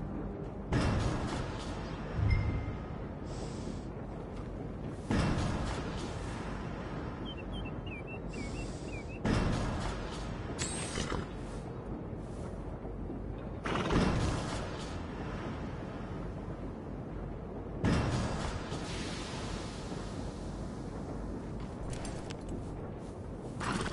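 A horse snorts and breathes heavily.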